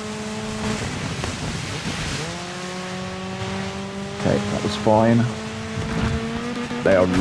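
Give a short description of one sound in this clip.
Tyres crunch and slide over snow.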